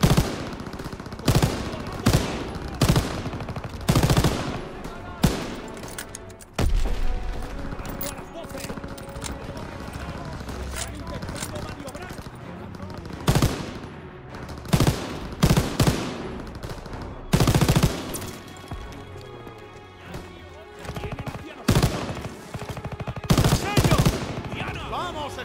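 Loud, close gunshots fire in short bursts.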